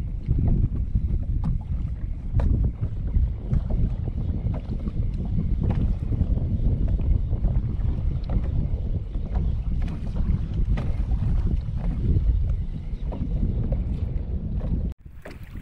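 A fishing reel clicks and whirs as it is wound.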